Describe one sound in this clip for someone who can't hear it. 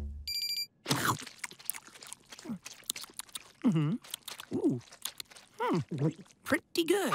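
A boy chews noisily with his mouth full.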